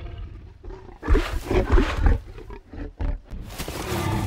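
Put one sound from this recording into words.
A large creature sniffs and snorts up close.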